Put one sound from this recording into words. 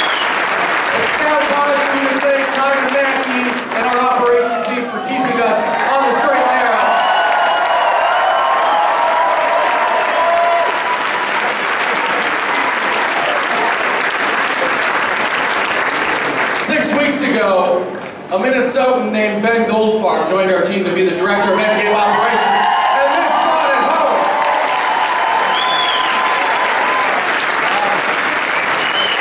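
A large crowd cheers loudly in a big echoing hall.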